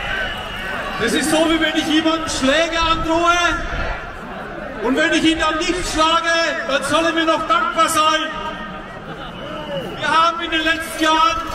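A man speaks through loudspeakers outdoors, echoing off buildings.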